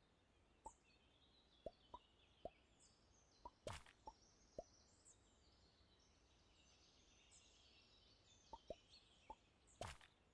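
Soft clicks sound as game pieces move.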